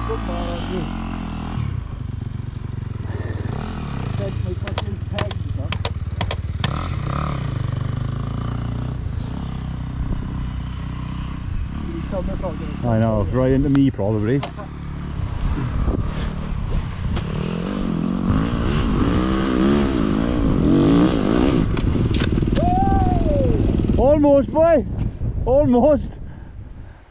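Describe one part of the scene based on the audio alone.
A dirt bike engine idles close by with a low steady rumble.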